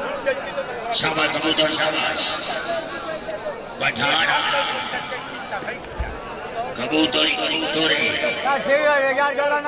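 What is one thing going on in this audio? A large outdoor crowd cheers and shouts in bursts.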